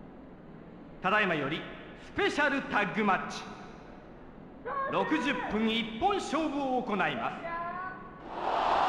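A man announces loudly and drawn out through a microphone in a large echoing hall.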